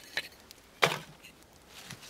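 Split kindling clatters.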